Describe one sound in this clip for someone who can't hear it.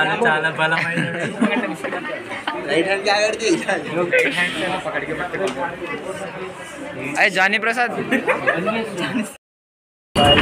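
Young men laugh and chat close by.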